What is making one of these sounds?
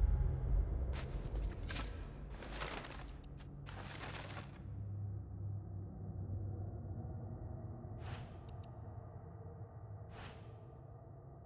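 Paper pages flip with soft rustling swishes.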